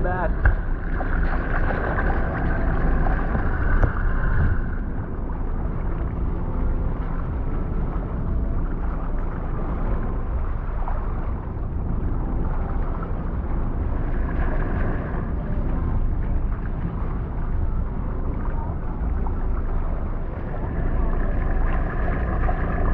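Water sloshes and gurgles close by at the surface.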